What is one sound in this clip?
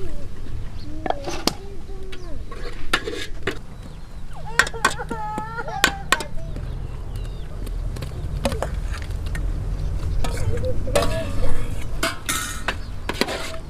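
A metal ladle clinks and scrapes against a pot.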